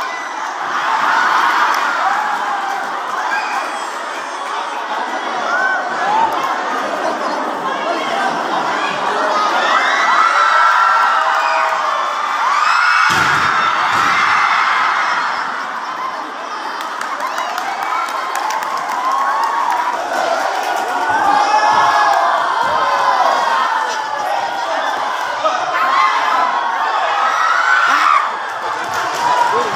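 A large crowd cheers and chatters loudly in a big echoing hall.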